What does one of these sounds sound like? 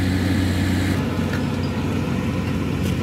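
A tractor engine roars steadily.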